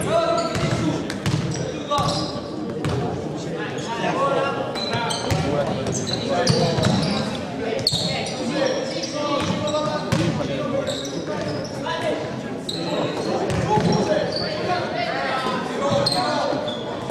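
Basketball shoes squeak on a hardwood court in a large echoing gym.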